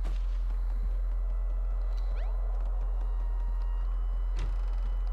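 Soft footsteps patter across a wooden floor.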